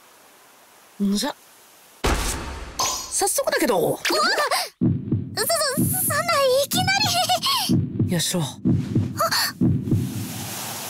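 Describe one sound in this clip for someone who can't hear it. A young girl speaks shyly and nervously, close up.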